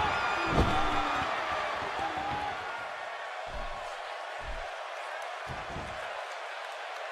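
Heavy thuds sound as wrestlers hit each other.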